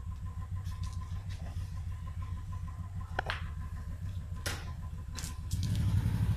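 Firecrackers pop sharply close by.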